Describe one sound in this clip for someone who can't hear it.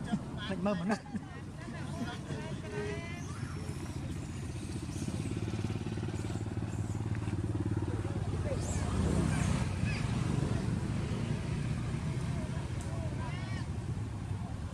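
A baby monkey squeaks in high, short cries.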